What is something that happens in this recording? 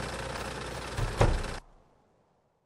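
A door opens and closes with a thud.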